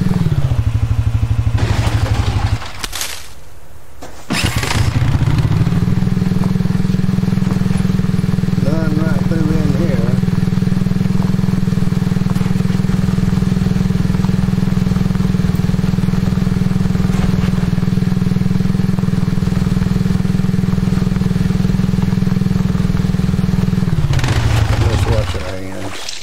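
A quad bike engine drones steadily as the bike rides along.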